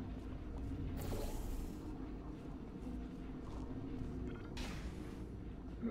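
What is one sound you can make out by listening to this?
A portal gun fires with a sharp whoosh.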